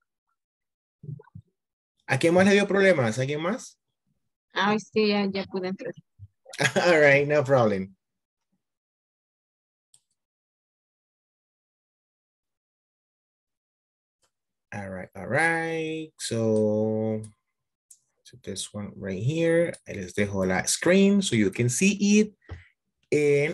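A man talks calmly over an online call, pausing now and then.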